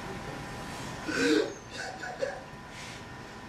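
A man shifts his body across a floor with a soft rustle.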